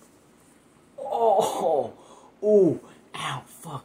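A young man shouts and groans with exaggerated expression.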